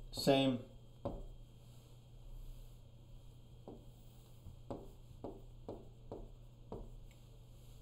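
A marker taps and squeaks on a glass board.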